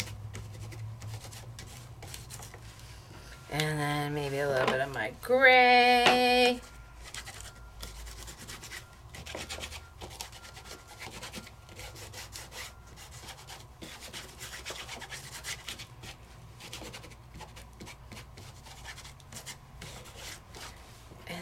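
A sponge softly dabs and rubs on card.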